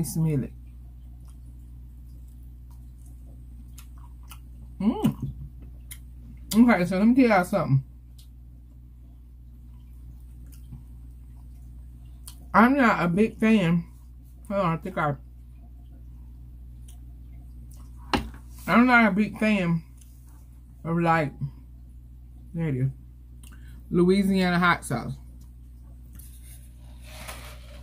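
A young woman chews food with wet smacking sounds.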